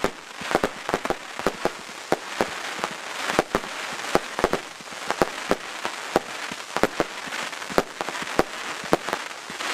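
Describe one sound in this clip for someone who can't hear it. Fireworks fizz and crackle with a steady hiss of sparks.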